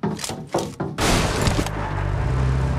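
A vehicle crashes with a loud bang.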